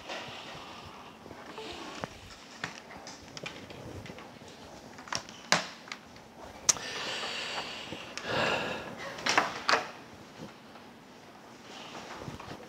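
Laptop keys click and tap now and then.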